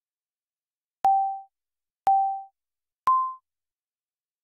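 Three short electronic countdown beeps sound, the last one higher.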